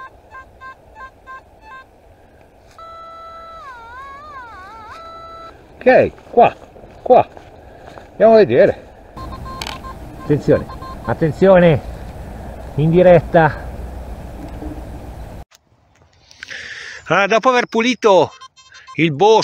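A metal detector beeps and warbles in varying tones.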